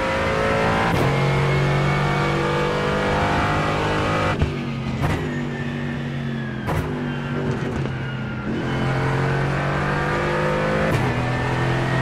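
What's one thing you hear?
Gear changes crack sharply every few seconds.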